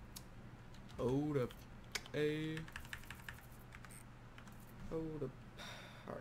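Short electronic menu tones sound as selections change.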